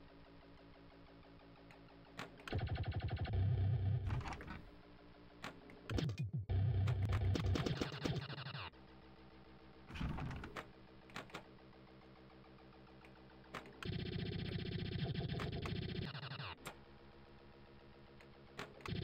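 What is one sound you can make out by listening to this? Electronic pinball game music plays steadily.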